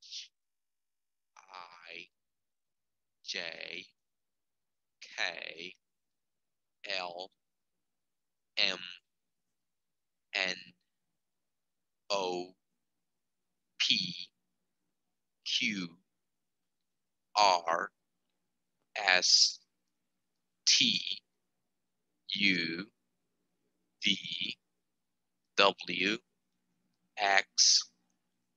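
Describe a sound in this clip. A man speaks clearly into a headset microphone, saying short words one at a time with pauses between.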